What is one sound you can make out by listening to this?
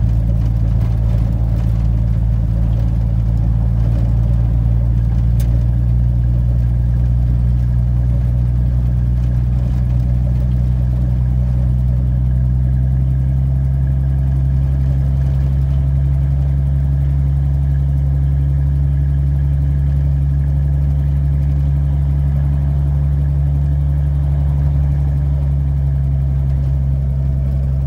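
Tyres rumble over a snowy gravel road.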